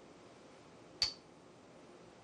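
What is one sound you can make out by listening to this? A game stone clicks down onto a wooden board.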